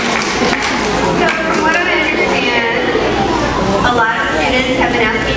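A young woman speaks with animation into a microphone, heard through loudspeakers in an echoing hall.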